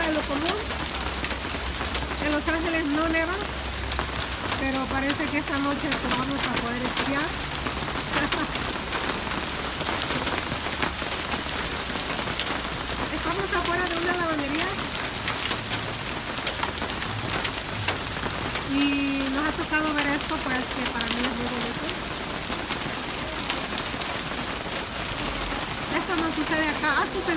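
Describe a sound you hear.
Rain and small hail patter steadily on cars and wet pavement outdoors.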